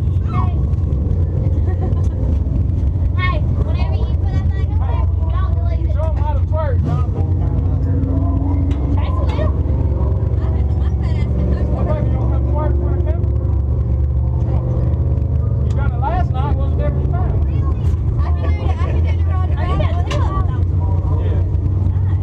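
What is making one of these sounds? Young women talk and laugh with animation close by.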